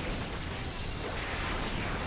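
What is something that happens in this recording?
Electric zaps crackle sharply.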